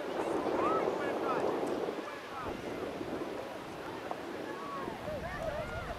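Young players call out and shout to each other across an open field.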